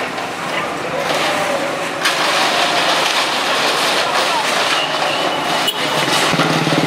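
Rubble crashes and clatters as a wall is torn down.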